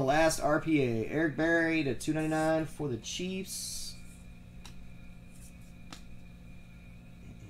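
Trading cards rustle and slide in gloved hands.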